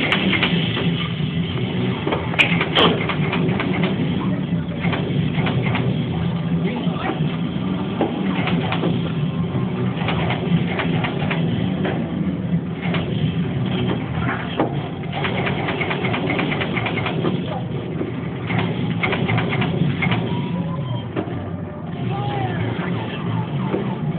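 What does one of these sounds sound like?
Arcade machines hum and chime all around.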